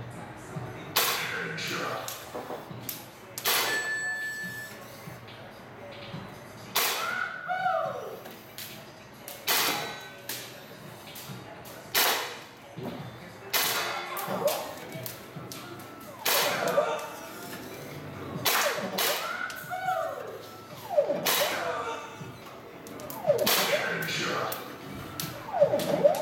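A toy gun fires sharp shots in short bursts.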